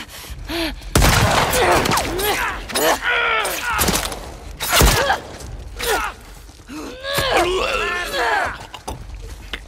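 A man grunts and cries out in a struggle.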